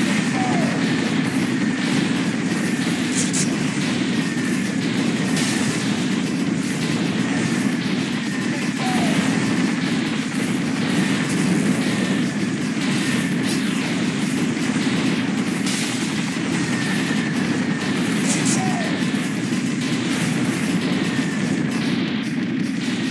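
Rapid gunfire rattles without pause.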